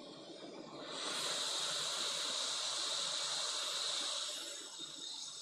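A hot air tool blows with a steady rushing hiss.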